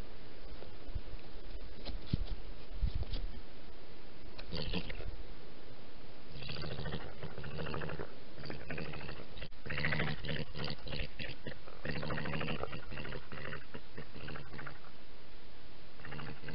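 A badger rustles and scratches through dry leaves and bedding close by.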